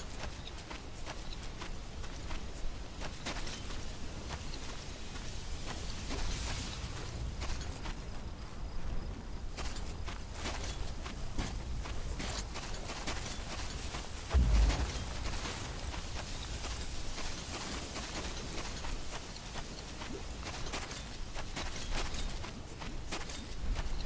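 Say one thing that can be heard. Footsteps crunch on sand and gravel.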